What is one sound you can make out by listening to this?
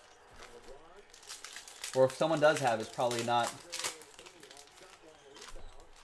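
Trading card packs crinkle as hands tear them open.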